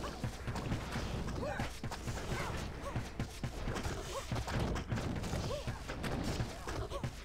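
Magic spells crackle and burst in a fast-paced fight.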